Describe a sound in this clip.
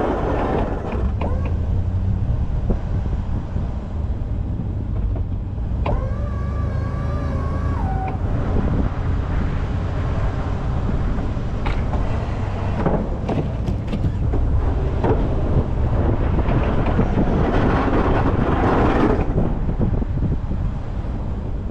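A plow blade scrapes and pushes through snow.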